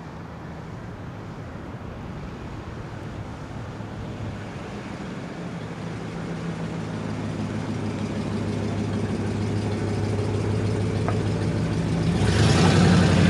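A car engine idles with a low rumble and grows louder as the car rolls slowly closer.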